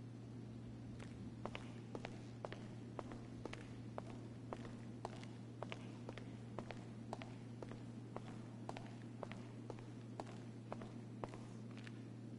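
Heeled footsteps tap steadily on a hard floor in a large echoing room.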